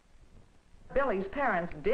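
A man speaks calmly, heard through an old, thin recording.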